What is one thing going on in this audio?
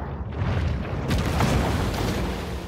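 Water splashes and churns at the surface as a large fish breaks through.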